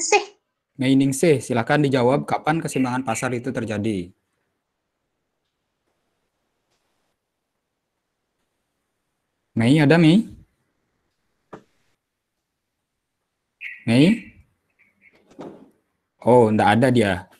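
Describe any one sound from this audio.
A man speaks calmly through an online call, pausing now and then.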